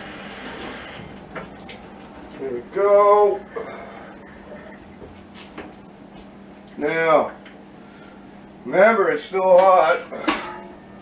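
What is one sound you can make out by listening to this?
Dishes and utensils clink and knock.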